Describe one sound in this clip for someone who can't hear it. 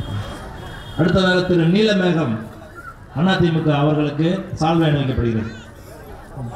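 A man speaks loudly through a loudspeaker in an open space.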